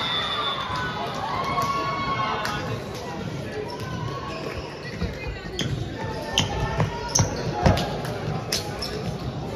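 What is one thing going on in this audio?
A volleyball is struck and thumps on the floor.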